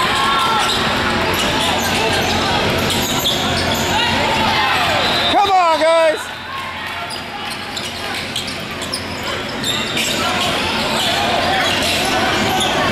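A crowd of people chatters and calls out, echoing in a large hall.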